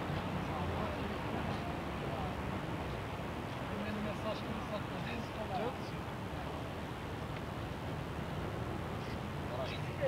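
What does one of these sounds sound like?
Wind gusts and buffets steadily outdoors.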